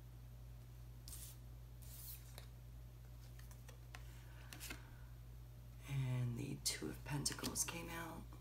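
Cards slide and tap as they are dealt onto a table.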